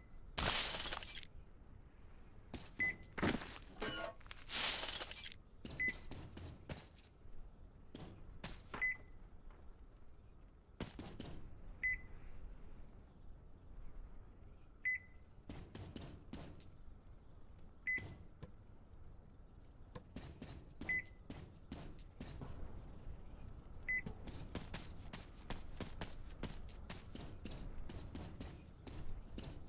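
Footsteps clomp steadily on a hard metal floor.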